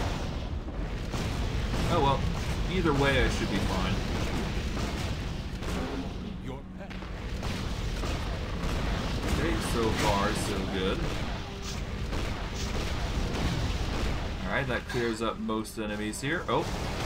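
Magic blasts whoosh and crackle in rapid bursts.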